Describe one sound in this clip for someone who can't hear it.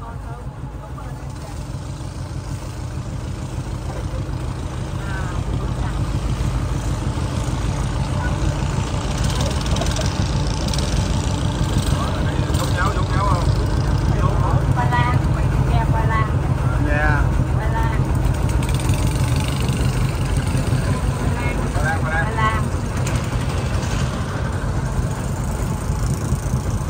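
A boat engine rumbles steadily up close.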